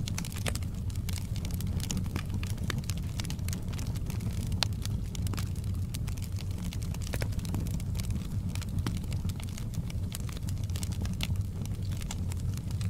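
Flames roar with a low, steady rumble.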